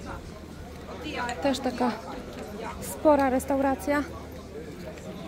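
People chat nearby at outdoor tables.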